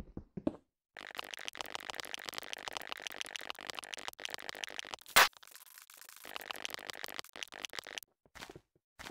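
A pickaxe chips rapidly at stone.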